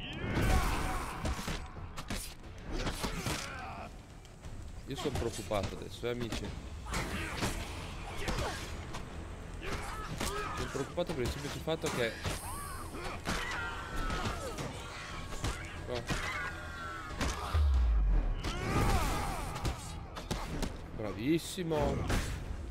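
Swords clash and strike in a game fight.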